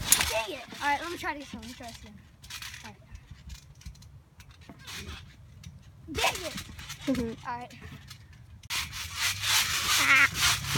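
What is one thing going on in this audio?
A trampoline mat thumps and creaks as children bounce on it.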